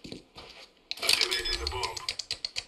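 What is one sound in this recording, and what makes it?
Electronic keypad beeps sound rapidly.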